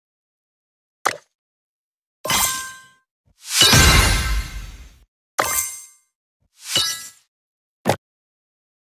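Game interface chimes ring out in short bursts.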